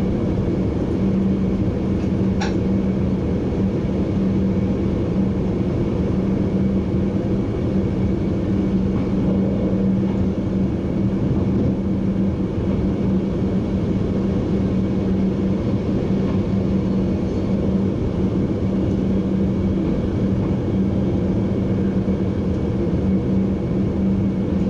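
A train's motor hums with a steady low drone.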